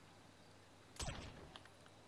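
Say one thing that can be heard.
A punch lands with a thud.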